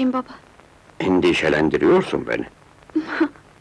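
An elderly man speaks in a low voice, close by.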